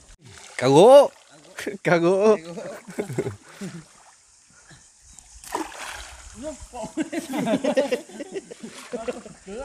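Water splashes as a person wades through a river.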